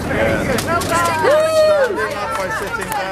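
A woman shouts and laughs close by.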